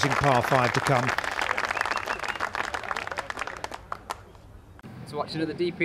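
A crowd cheers and applauds outdoors.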